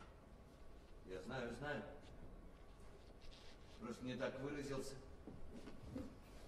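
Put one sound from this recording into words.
A man speaks quietly in a large hall.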